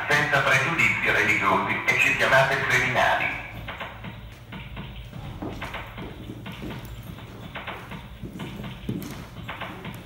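Electronic music plays through loudspeakers.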